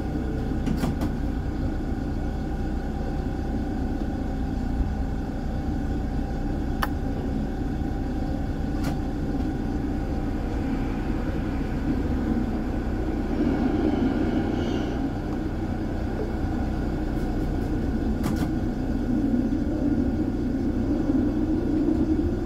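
A tram hums and rumbles steadily along its rails.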